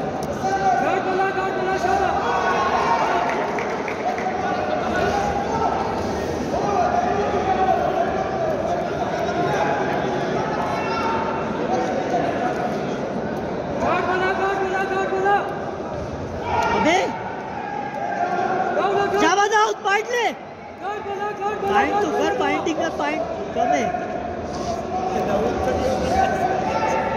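A large crowd of spectators chatters and shouts in a large echoing hall.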